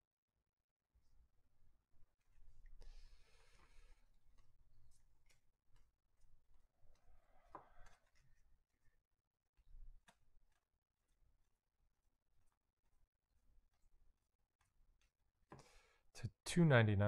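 Trading cards flick and shuffle softly between hands.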